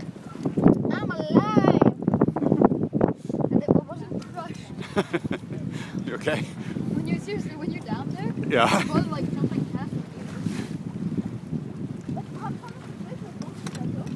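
Water splashes and laps against a moving boat.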